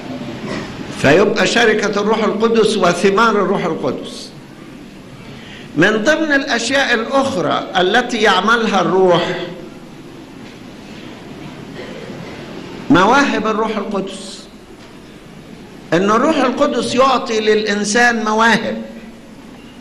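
An elderly man speaks slowly and firmly into a microphone, pausing between phrases.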